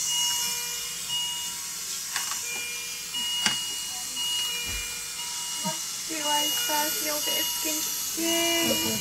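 Medical monitors beep in short repeated tones.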